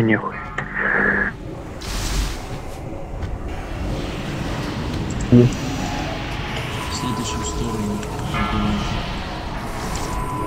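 Magic spells whoosh, crackle and boom in a busy fantasy battle.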